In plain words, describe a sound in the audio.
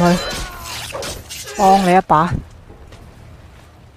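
Swords clash in a brief fight.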